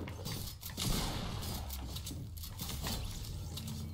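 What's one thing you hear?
A pickaxe strikes hard in a video game.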